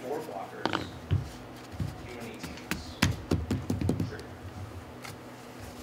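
Playing cards tap and slide on a soft table mat.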